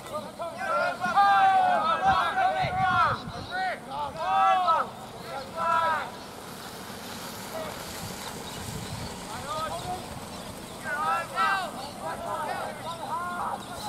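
Young women shout and call out across an open field nearby.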